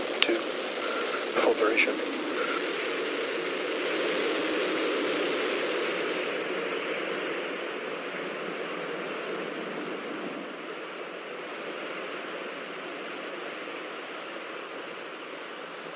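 Rocket engines roar with a steady rushing blast that eases off toward the end.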